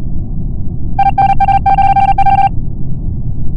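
Rapid electronic beeps tick out as text types onto a game display.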